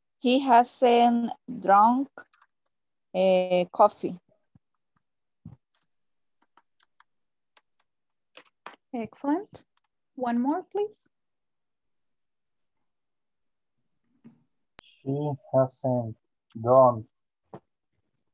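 A woman speaks calmly and clearly, heard through an online call, with pauses between phrases.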